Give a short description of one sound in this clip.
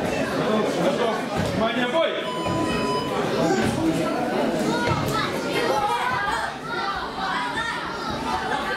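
A crowd of adults and children chatters and calls out in an echoing hall.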